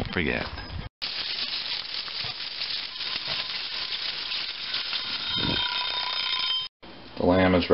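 Meat sizzles in a hot oven.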